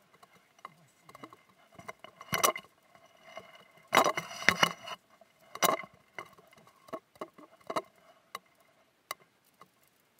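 Skis swish and crunch through deep powder snow.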